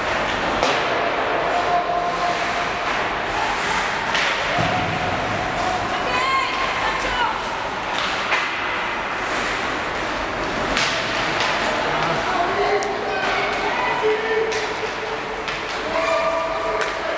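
Ice skates scrape and carve across ice in an echoing indoor rink.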